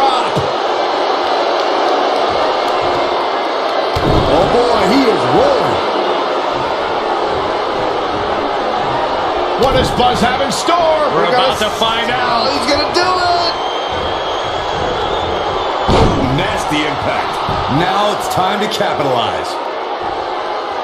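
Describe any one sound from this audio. A crowd cheers and roars steadily.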